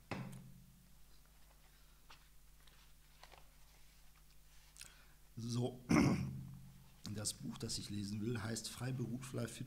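Book pages rustle as they are turned.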